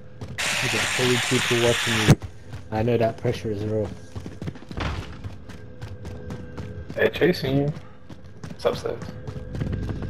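Footsteps tap quickly on a hard floor and stairs.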